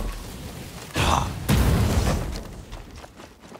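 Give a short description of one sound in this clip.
A fiery blast bursts with a deep roar.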